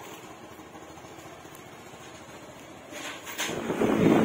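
A motorcycle engine runs quietly nearby.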